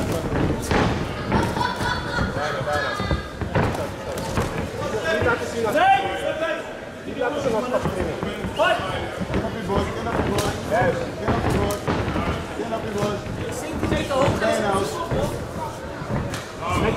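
Gloved punches and kicks thud sharply against bodies.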